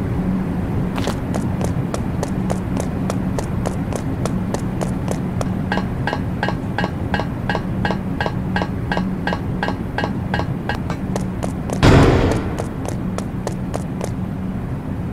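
Quick footsteps patter in a steady rhythm.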